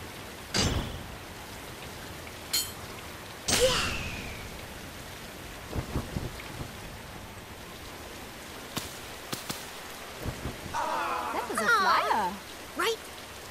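Rain falls steadily on grass.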